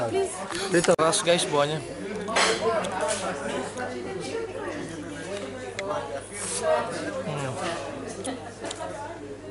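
A young man talks close to the microphone in a casual tone.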